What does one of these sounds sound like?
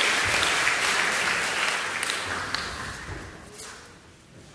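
An audience applauds in a large hall, and the applause fades away.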